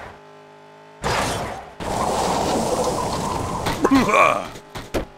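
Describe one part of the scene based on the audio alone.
A monster truck engine roars as it races over dirt.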